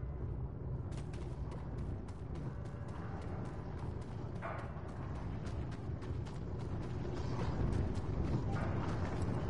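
Footsteps run over rock.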